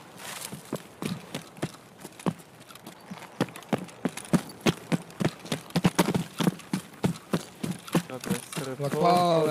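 Footsteps crunch quickly over ground and brush.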